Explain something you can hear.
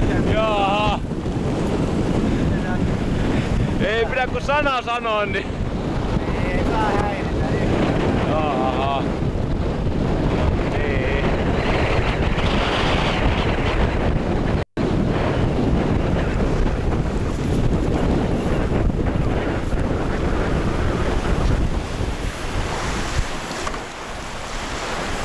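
Strong wind roars over open water.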